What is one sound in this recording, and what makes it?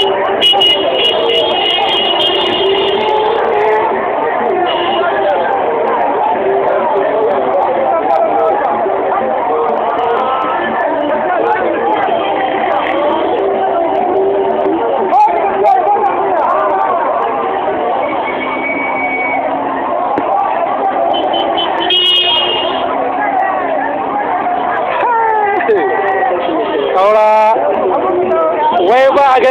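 A crowd of people shouts and cheers outdoors.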